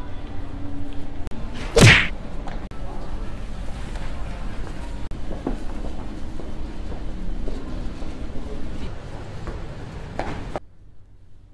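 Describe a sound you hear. Footsteps run across a hard floor.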